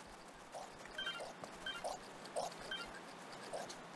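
A short bright chime rings several times.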